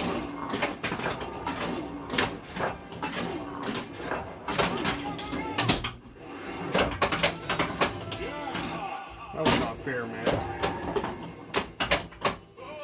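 A pinball machine plays electronic music and sound effects.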